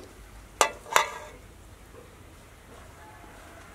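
Crisp lettuce leaves crackle.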